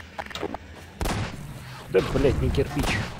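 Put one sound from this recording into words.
A weapon fires with a loud crackling blast.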